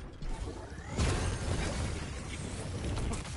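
A large blast crackles and booms.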